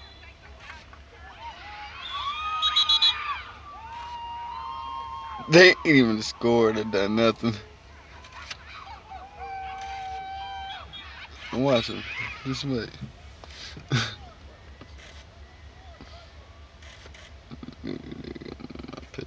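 Players shout to each other far off across an open field.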